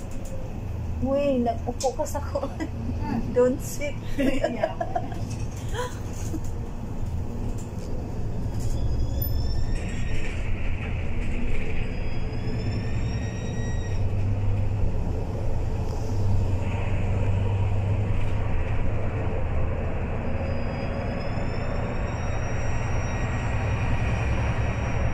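A bus engine rumbles low and steady from inside the cabin.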